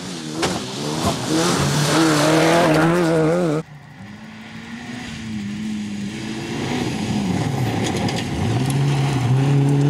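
Gravel sprays and crunches under car tyres.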